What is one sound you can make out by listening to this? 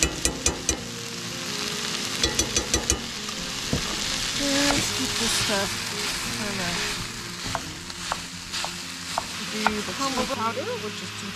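Ground meat sizzles in a hot pan.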